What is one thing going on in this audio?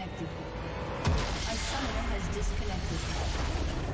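A loud magical burst booms as a structure explodes.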